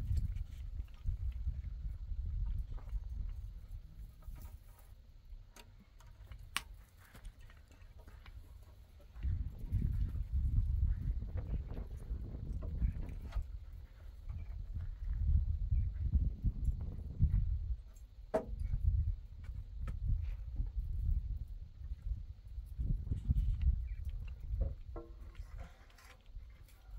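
Wooden poles knock and creak.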